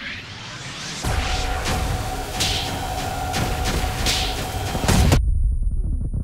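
A crackling energy blast roars loudly for a few seconds.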